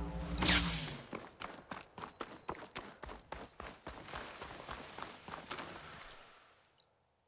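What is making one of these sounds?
Footsteps thud quickly on rocky ground.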